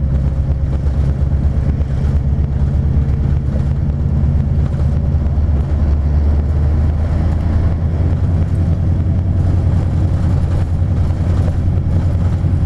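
A car engine hums steadily with road noise from inside a moving car.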